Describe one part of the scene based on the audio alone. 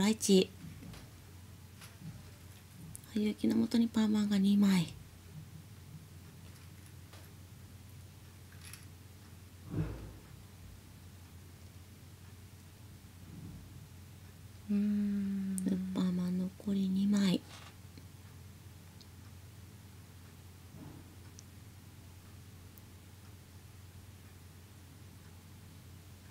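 Mahjong tiles click softly as they are placed on a table.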